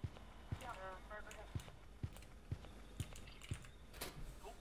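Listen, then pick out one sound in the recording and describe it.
Footsteps thud at an even pace.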